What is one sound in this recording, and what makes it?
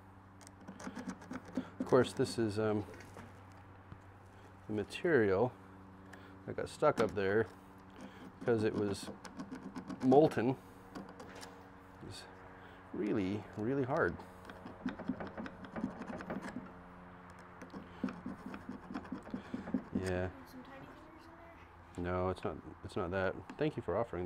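Metal clicks and taps on a work table.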